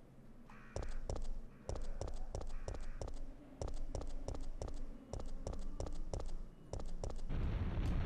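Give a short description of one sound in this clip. Footsteps run quickly on stone paving.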